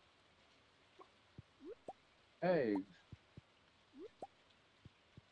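A chicken clucks softly.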